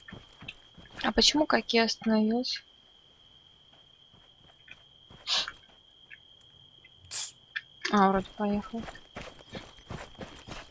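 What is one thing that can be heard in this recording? A young woman speaks into a headset microphone.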